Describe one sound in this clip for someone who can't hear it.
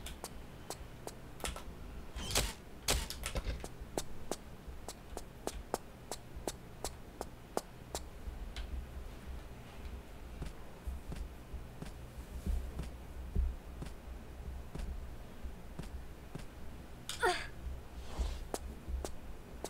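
Footsteps run across a metal floor.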